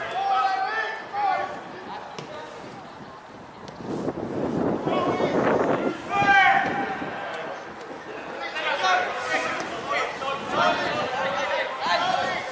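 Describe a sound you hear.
Young women shout to each other across an open pitch outdoors.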